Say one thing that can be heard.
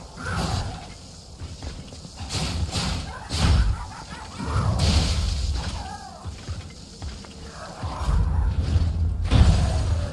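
Heavy metallic footsteps thud on the ground.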